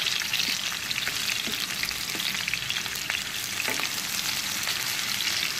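Onions sizzle steadily in hot oil.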